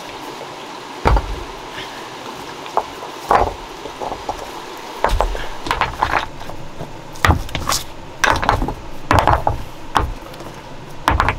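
Stones knock and scrape against each other as they are moved.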